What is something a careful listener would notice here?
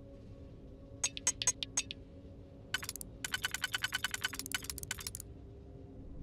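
Rapid electronic clicks tick in bursts as a lock dial turns.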